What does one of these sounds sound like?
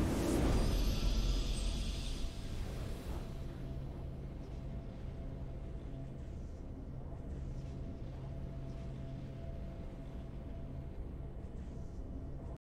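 A quiet game victory theme plays with steady tones.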